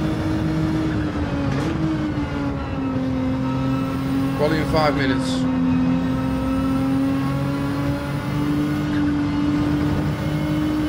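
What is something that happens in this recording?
A racing car engine drones steadily, its pitch dipping and rising with the gears.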